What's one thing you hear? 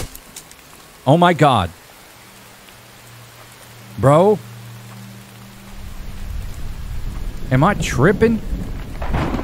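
A man talks into a close microphone, calmly.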